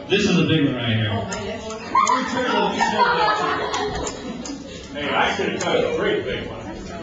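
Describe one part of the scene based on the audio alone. A man speaks with animation through loudspeakers in a large room.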